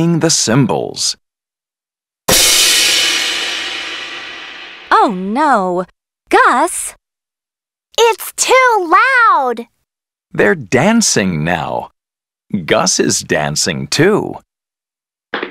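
Young cartoon characters speak in high, animated voices.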